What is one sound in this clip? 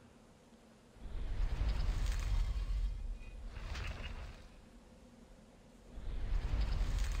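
A heavy stone statue grinds and rumbles as it turns.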